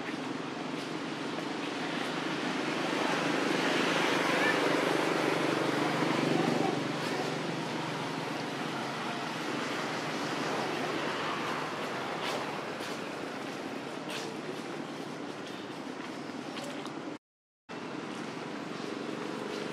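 A monkey munches and crunches on leafy greens.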